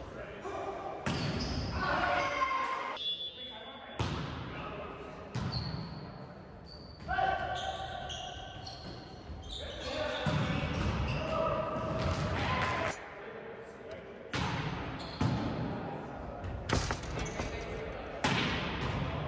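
A volleyball is hit with sharp slaps that echo in a large hall.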